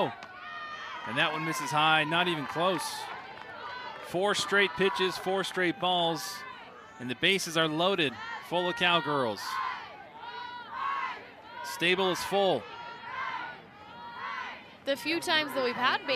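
A crowd cheers and shouts.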